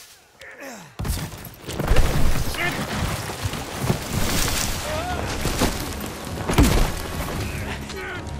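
A loud explosion blasts nearby and showers debris with a heavy rumble.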